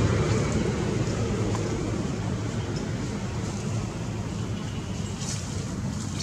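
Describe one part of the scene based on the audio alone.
Leaves rustle as a monkey climbs through branches.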